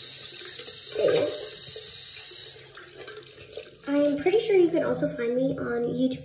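A young girl speaks close to the microphone.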